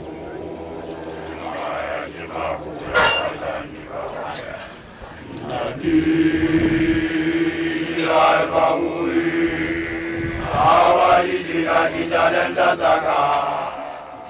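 A crowd of children sings and chants together outdoors.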